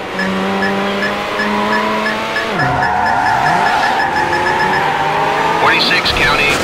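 A racing car engine roars steadily, dropping in pitch as it shifts gear and then climbing again.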